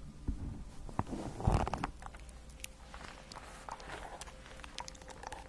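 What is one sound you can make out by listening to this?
Paper pages rustle and flap close by.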